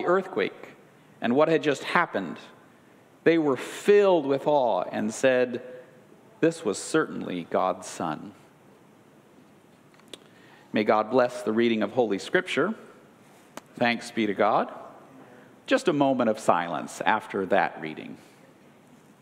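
A middle-aged man reads aloud calmly into a microphone.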